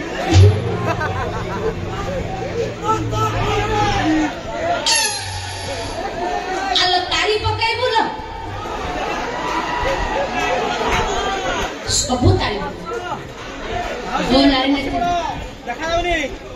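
A man speaks loudly through a loudspeaker.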